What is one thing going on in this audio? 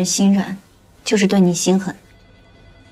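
A young woman asks a question calmly and firmly, close by.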